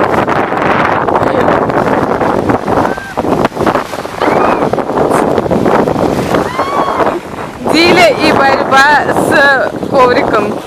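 Small waves wash and splash against the shore.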